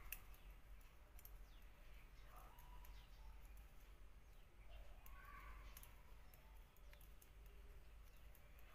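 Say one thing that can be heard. Metal knitting needles click and tick against each other.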